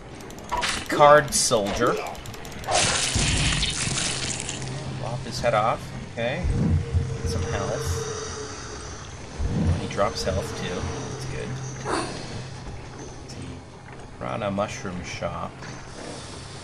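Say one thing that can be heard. A man talks casually, close to a microphone.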